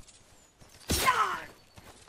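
Swords clash with a sharp metallic ring.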